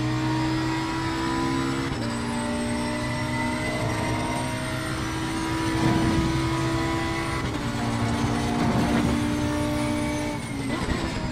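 A racing car engine roars steadily at high revs, its pitch dropping briefly with each gear change.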